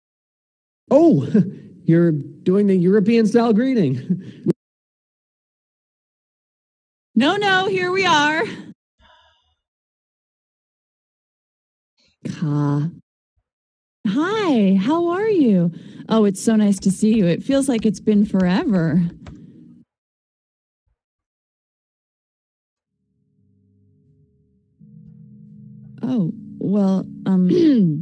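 A young man reads out lines with animation, close to a microphone.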